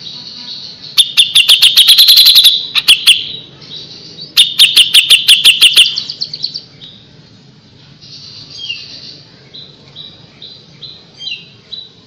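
A songbird sings loud, rapid bursts of sharp chirping notes, with quieter twittering in between.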